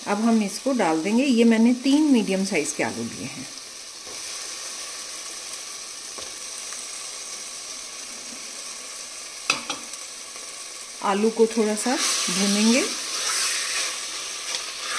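Food sizzles softly in a pot.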